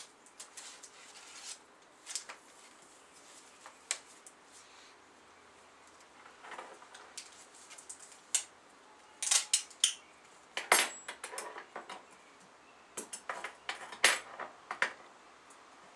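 A plastic disc case clicks and rattles as it is handled.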